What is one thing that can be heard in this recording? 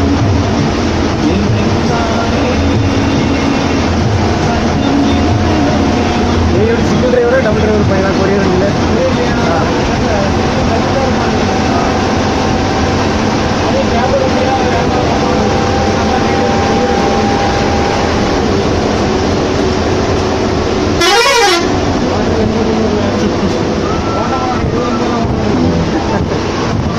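A bus engine drones steadily while driving.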